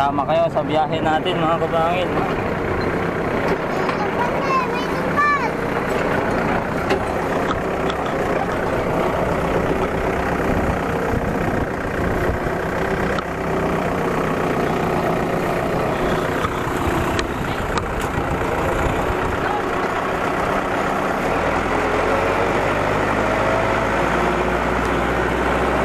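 A small tractor engine chugs loudly close by.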